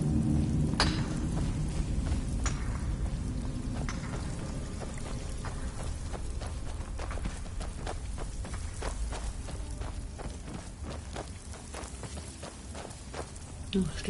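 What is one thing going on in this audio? Footsteps crunch steadily on a dirt floor.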